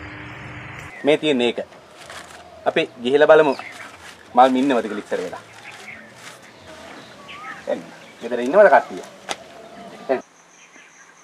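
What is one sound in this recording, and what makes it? A man speaks with animation outdoors, close by.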